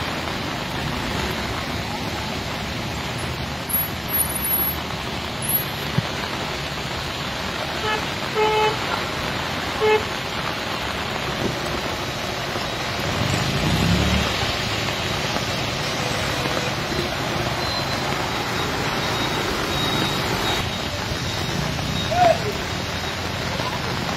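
Heavy rain pours steadily outdoors.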